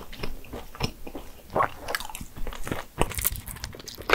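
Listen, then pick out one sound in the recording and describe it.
Crumbly cake tears apart with a faint crackle.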